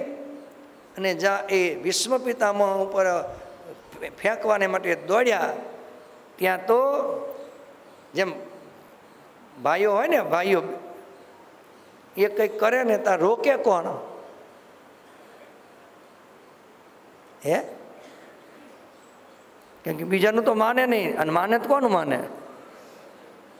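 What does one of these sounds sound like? An elderly man speaks calmly and deliberately into a microphone, in bursts with pauses between.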